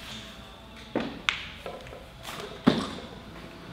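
Metal weight plates clank as a barbell is lifted overhead.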